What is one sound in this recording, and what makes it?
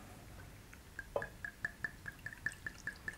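Liquid glugs from a bottle into a glass.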